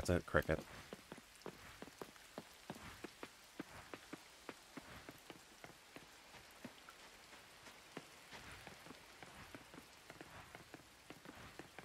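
Footsteps run quickly and steadily over ground.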